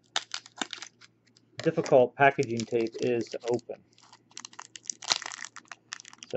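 A plastic package crinkles and rustles as it is handled.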